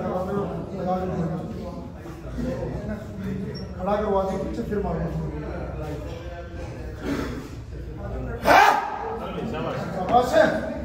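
Several men shout encouragement loudly.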